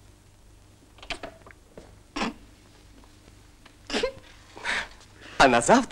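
A young man sings loudly in short bursts nearby.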